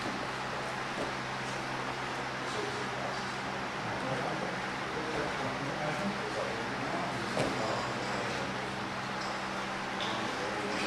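Two wrestlers shuffle and thud against a padded mat.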